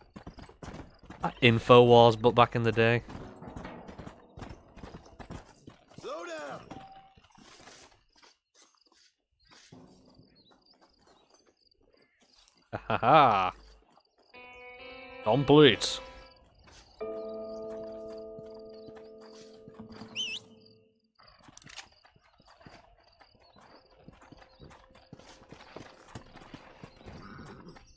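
A horse's hooves thud on dry ground at a gallop.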